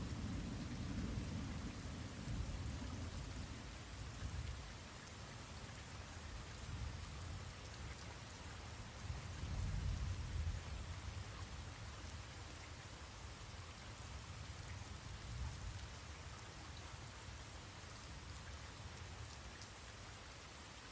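A young man speaks quietly and close to a microphone.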